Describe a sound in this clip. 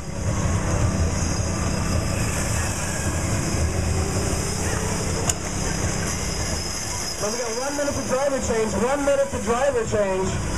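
Small go-karts whir and hum as they drive past on pavement.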